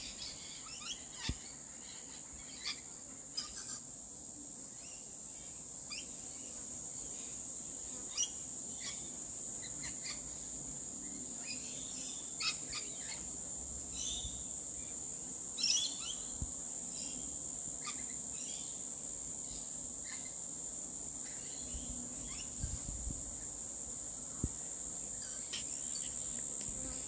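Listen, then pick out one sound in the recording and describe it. Parrots squawk and screech in the trees.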